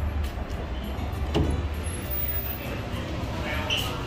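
A glass door swings open.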